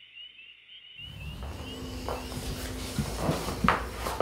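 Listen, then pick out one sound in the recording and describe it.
Bedsheets rustle as someone sits up quickly in bed.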